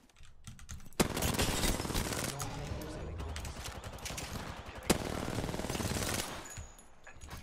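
Gunfire rattles in bursts from a video game.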